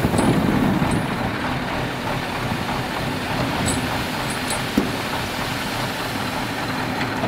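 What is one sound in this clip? Sand and gravel pour and hiss out of a tipping dump truck bed.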